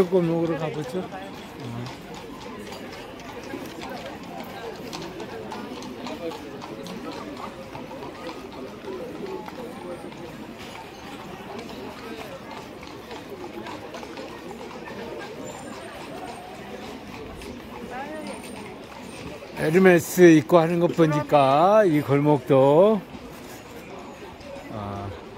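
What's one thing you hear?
A crowd of people chatters steadily outdoors.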